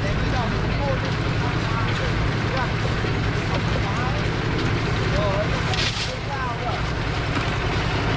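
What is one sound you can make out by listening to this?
Wheelbarrows rattle as they roll over a concrete slab.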